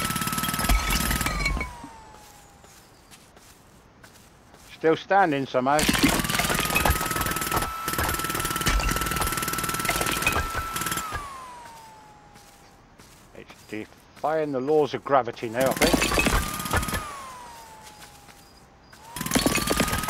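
A jackhammer rattles loudly in bursts, winding up and down.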